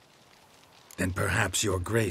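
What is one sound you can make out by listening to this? A man speaks in a low, gravelly voice, close to the microphone.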